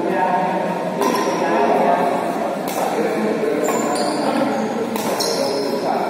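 Rackets strike a shuttlecock back and forth in an echoing hall.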